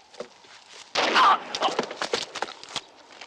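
A body thuds onto gravel.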